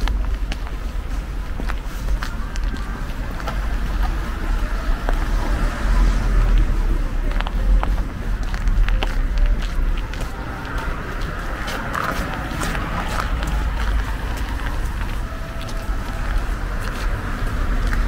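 A car drives past on a slushy street.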